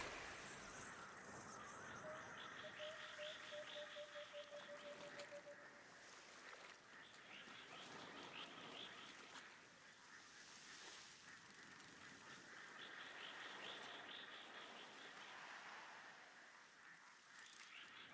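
Shallow water washes and laps steadily nearby.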